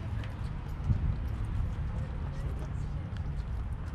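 A man speaks close by outdoors.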